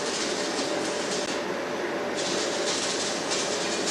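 A metal railing rattles faintly as a man lifts it.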